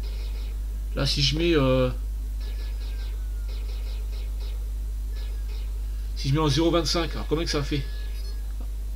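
A man speaks briefly close to a microphone.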